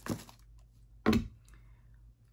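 A plastic jar clicks as it is picked up.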